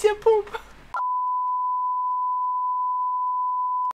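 A steady, high-pitched test tone sounds without a break.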